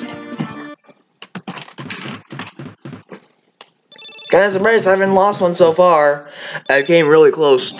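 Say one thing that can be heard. A bright electronic game tune plays.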